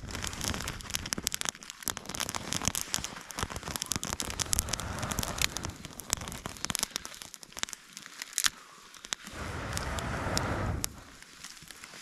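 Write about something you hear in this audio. Foil crinkles as it is handled.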